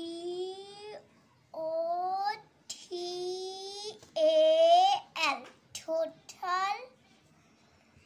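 A young child speaks closely in a high, sing-song voice.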